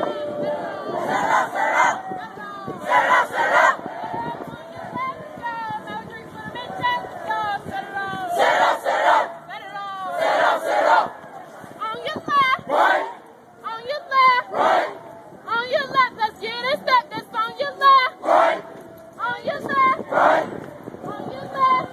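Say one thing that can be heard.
A group of young people chant in unison in reply.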